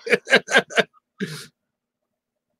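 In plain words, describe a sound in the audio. A man laughs heartily into a headset microphone over an online call.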